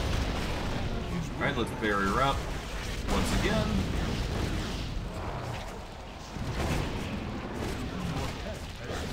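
Spells crackle and blast in a rapid fight.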